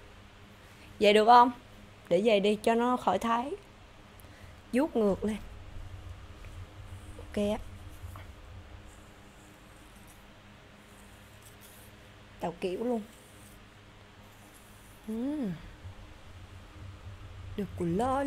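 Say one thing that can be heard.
A young woman speaks softly into a close microphone in short bursts.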